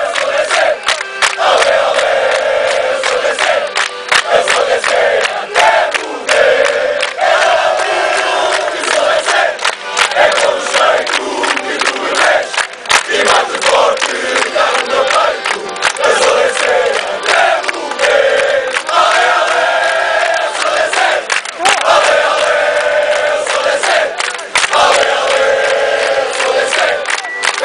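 Guitars strum along with the singing.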